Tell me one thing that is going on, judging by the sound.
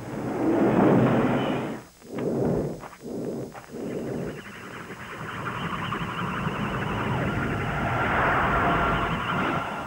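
A blade swishes sharply through the air.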